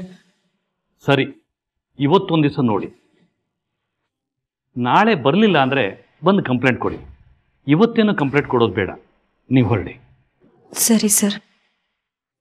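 A middle-aged man speaks sternly, close by.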